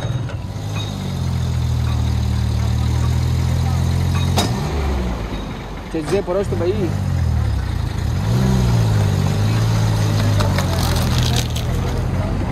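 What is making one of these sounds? A truck engine rumbles and revs close by.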